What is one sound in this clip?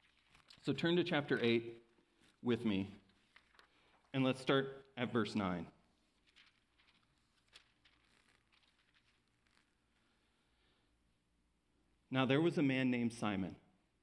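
A man reads out slowly into a microphone, pausing between phrases.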